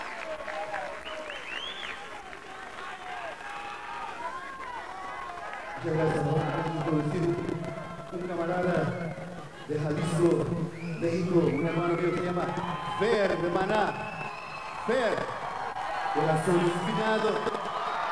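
A crowd cheers and whistles loudly in a large open space.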